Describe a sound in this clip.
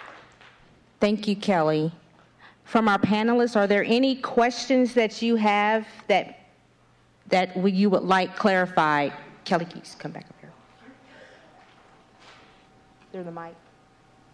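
A woman speaks with animation into a microphone in a large hall.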